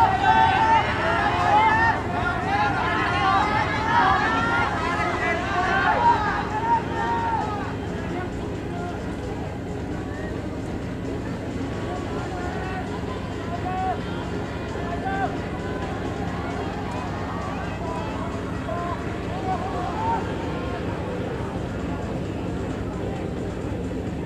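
Many runners' feet patter on a track.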